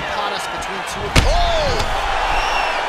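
A kick lands on a body with a dull thud.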